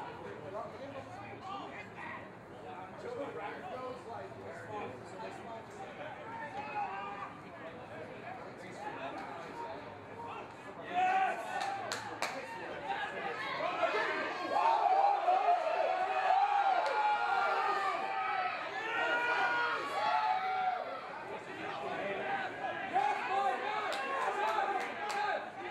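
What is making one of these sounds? Rugby players shout to each other outdoors on an open field.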